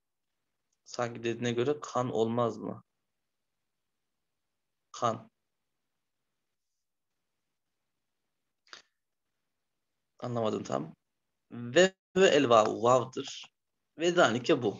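A man speaks calmly in bursts through an online call, with pauses between phrases.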